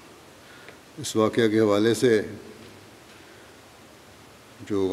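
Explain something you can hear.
An elderly man speaks calmly into a microphone, reading out.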